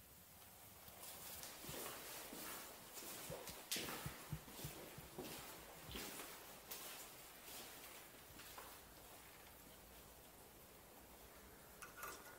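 Footsteps scuff and crunch on a gritty floor.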